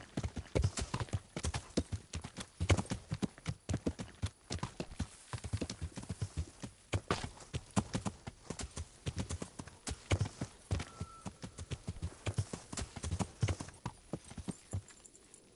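Horse hooves clatter quickly on a dirt path.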